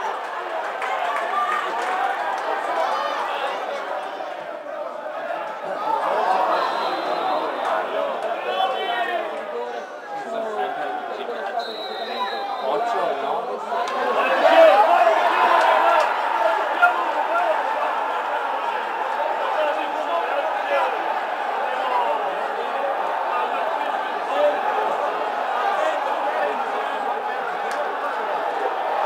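A large crowd chants and cheers in an open-air stadium.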